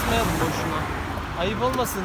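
A young man speaks up close.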